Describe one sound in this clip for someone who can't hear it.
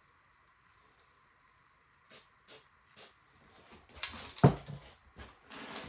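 Spray cans clink against each other.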